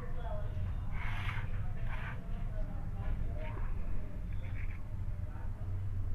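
A knife scrapes against a metal plate.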